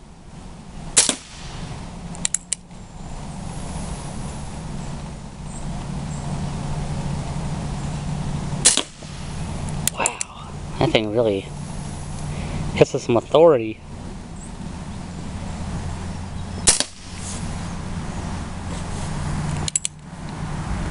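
A revolver fires sharp, loud shots outdoors.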